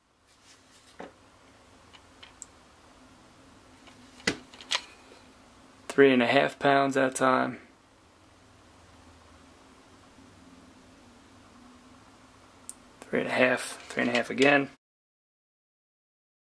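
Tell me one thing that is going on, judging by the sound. Plastic knocks and rattles softly as a trigger gauge is handled.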